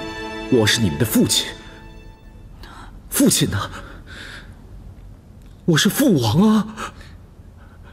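A man speaks sternly, close by.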